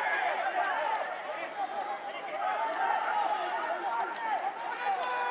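Young men shout to each other close by outdoors.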